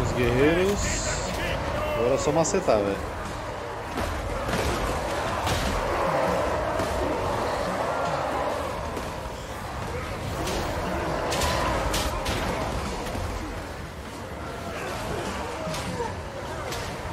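Battle noise of clashing weapons and a roaring crowd fills the air.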